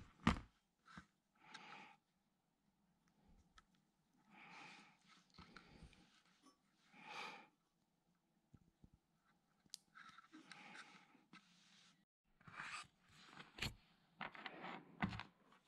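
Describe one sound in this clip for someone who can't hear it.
Small metal clips click as they are opened and closed.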